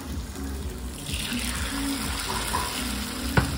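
Flatbread tears with a soft rustle.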